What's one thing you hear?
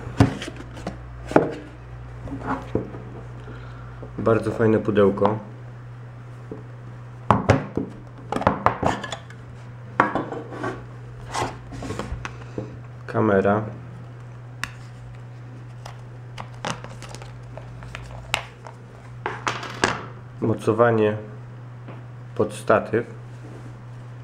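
Plastic packaging clicks and rustles as hands handle it.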